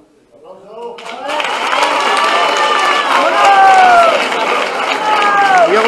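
An audience cheers and screams loudly.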